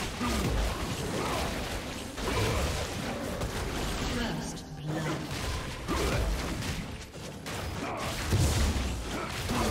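Video game spell effects whoosh and crackle.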